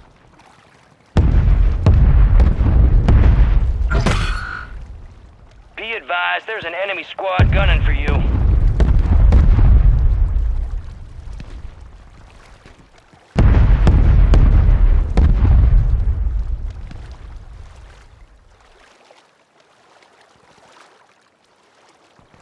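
Water splashes around a swimmer.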